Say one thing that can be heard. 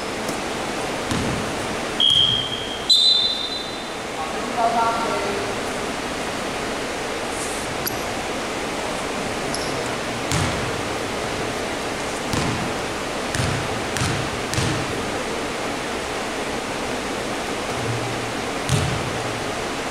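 A basketball bounces with dull thuds in an echoing hall.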